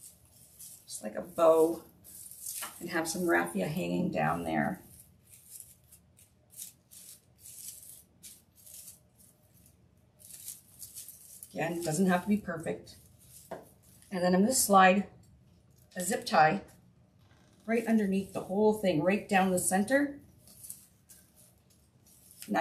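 Dry raffia rustles and crinkles between hands.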